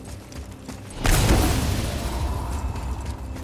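A heavy axe smashes through wooden beams with a loud crash.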